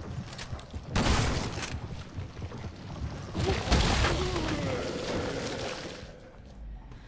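A creature growls and roars loudly up close.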